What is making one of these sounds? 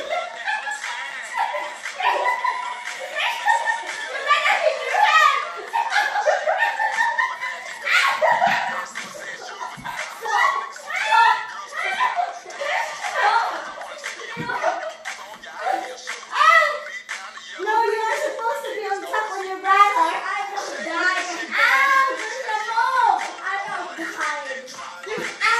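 Young children shout and squeal excitedly nearby.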